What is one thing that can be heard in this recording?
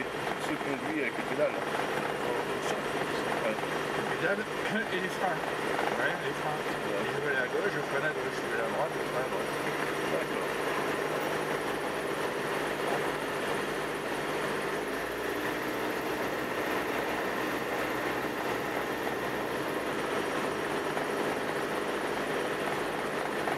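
A single-engine propeller plane drones from inside the cockpit as it taxis.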